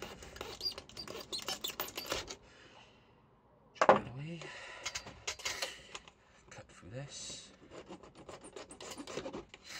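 A blade scrapes and cuts through thin plastic.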